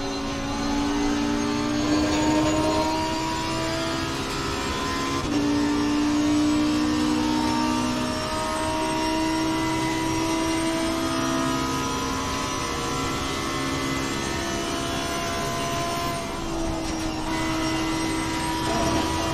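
A racing car engine roars at high revs, its pitch climbing through each gear and dropping at the shift.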